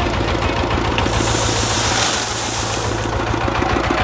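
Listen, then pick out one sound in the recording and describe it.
Gravel pours with a loud rushing clatter into a truck bed.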